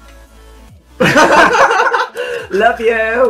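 Two young men laugh loudly close by.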